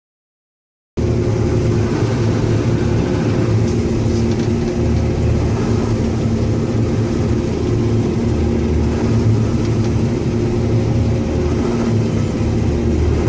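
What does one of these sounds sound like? A combine harvester's engine drones steadily.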